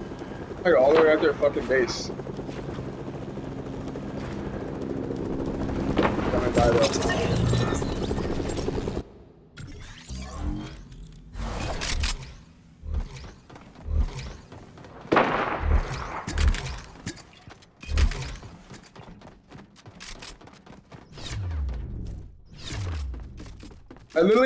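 Footsteps thud quickly across wooden boards in a game.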